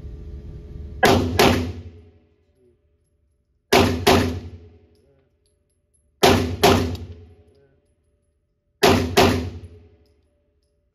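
Pairs of gunshots crack loudly and echo in an indoor range.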